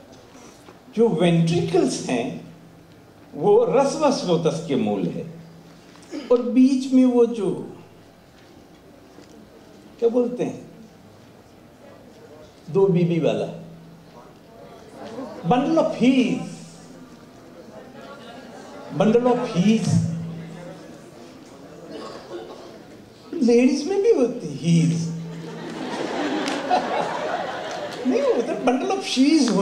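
An elderly man speaks slowly into a microphone in short phrases with pauses, in an echoing hall.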